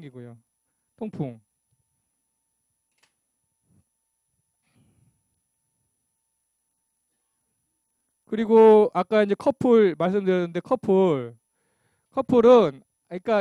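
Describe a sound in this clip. A middle-aged man speaks through a microphone in pauses, with animation.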